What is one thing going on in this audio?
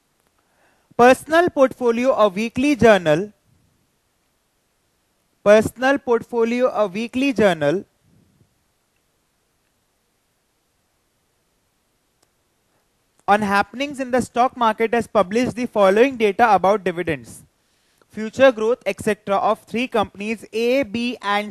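A young man speaks calmly and clearly into a close microphone.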